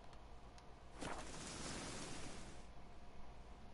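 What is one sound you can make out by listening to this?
A rushing whoosh swells and then fades away.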